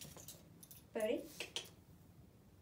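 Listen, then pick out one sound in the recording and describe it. A woman speaks briefly to a dog, close by.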